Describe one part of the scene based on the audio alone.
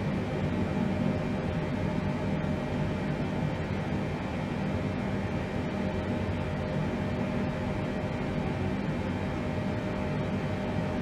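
Aircraft engines drone with a steady low hum.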